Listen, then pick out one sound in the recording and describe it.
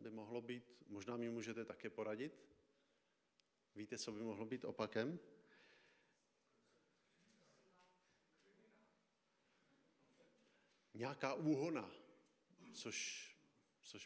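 A man preaches through a microphone in a room with a slight echo, speaking in slow, deliberate phrases.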